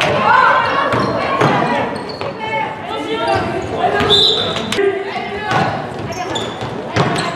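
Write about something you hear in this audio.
Young women shout to each other across the court.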